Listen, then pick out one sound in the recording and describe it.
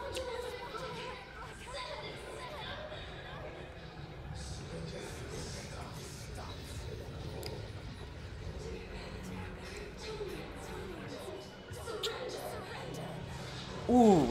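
A young woman groans and gasps in pain.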